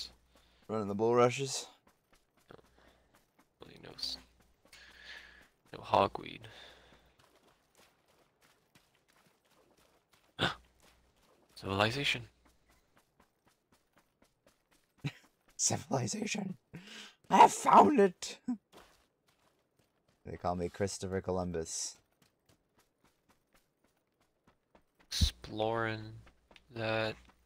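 A man talks into a close microphone in short bursts, with animation.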